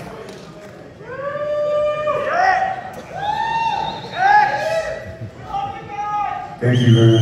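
A man sings through loudspeakers in a large hall.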